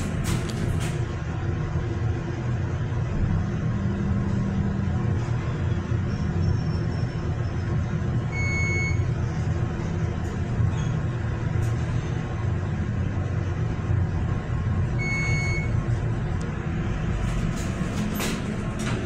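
An elevator car hums and rumbles steadily as it moves.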